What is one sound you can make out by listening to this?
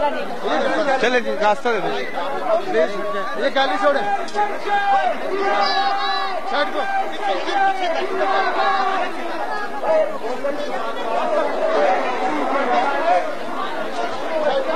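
A dense crowd of men and women chatters and calls out loudly all around.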